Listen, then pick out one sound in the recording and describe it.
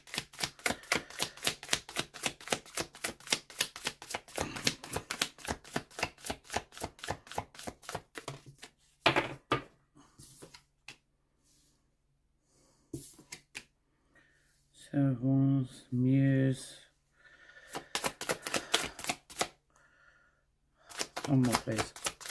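Playing cards riffle and flutter rapidly as a deck is shuffled by hand.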